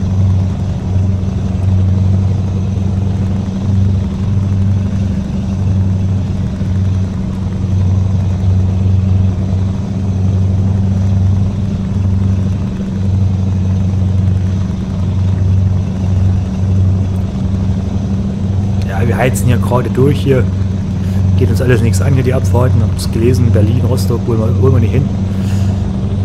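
A truck engine drones steadily at a low pitch while driving.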